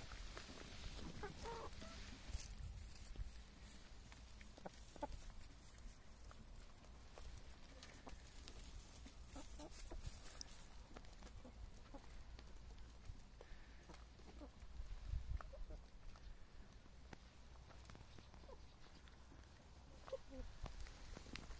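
Chickens cluck.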